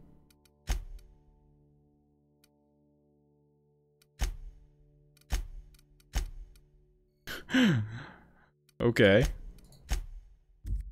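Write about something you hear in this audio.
Short interface clicks sound now and then.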